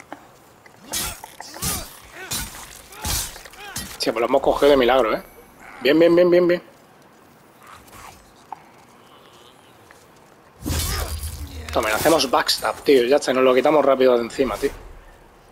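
A sword swishes and strikes a creature.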